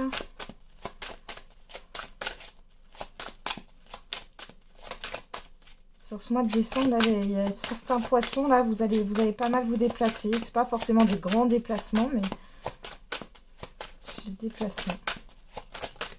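Playing cards are shuffled with quick, crisp riffling taps.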